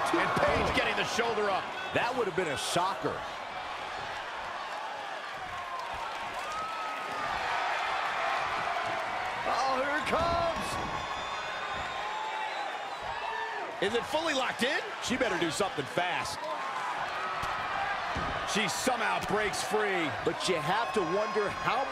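Wrestlers thud onto a wrestling ring canvas.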